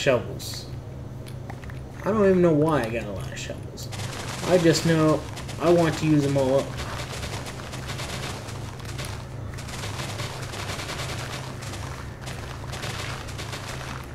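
A pickaxe digs into dirt and breaks it with dull crunches.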